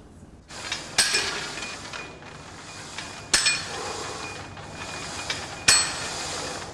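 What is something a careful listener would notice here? A metal weight machine clanks during a lift.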